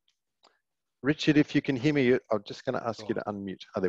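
A man speaks calmly into a headset microphone, heard as if over an online call.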